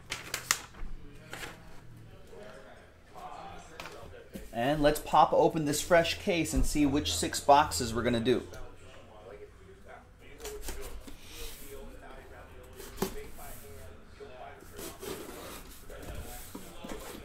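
A cardboard box is handled and turned, its flaps scraping and thumping.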